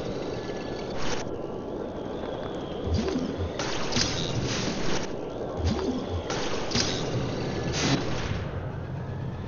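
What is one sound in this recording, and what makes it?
Heavy metal objects clank and thud.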